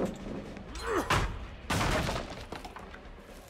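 A wooden pallet crashes down.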